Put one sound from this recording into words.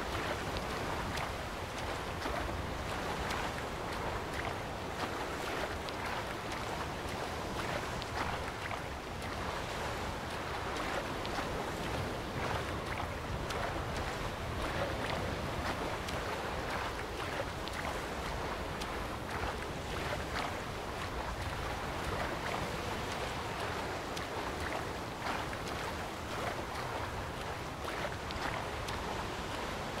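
Waves wash and churn across open water.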